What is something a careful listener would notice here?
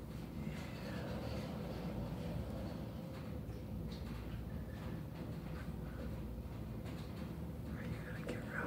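A dog sniffs loudly right up close.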